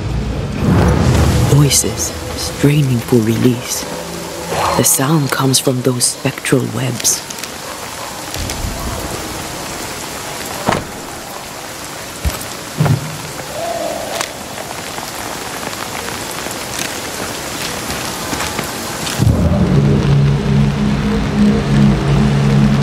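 Footsteps crunch over dirt and debris.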